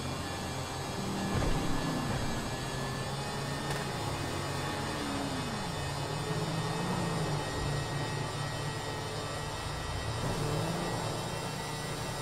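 A scooter engine hums steadily as it rides along.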